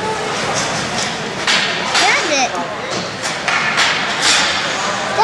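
Skate blades scrape across the ice in a large echoing rink.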